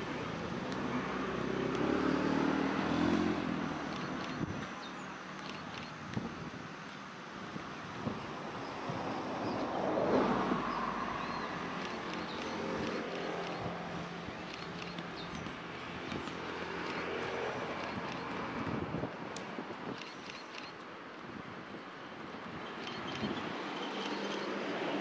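Footsteps thud softly on grass as several children run past.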